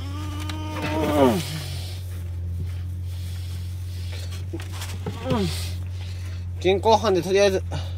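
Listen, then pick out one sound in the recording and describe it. Dry straw rustles as a hand reaches into it.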